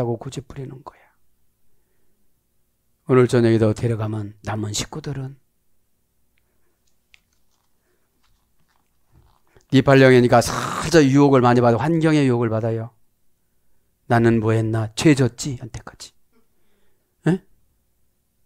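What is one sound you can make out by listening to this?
A middle-aged man speaks with animation into a headset microphone, pausing between phrases.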